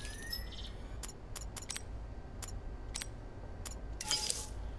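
Short electronic clicks and beeps sound in quick succession.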